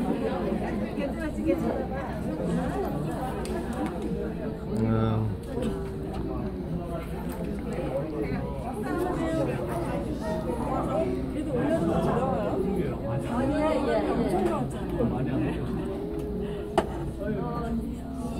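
A crowd of men and women chat at once in a room that echoes a little.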